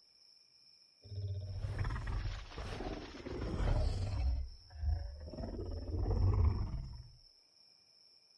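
Water splashes as a large creature wades through it.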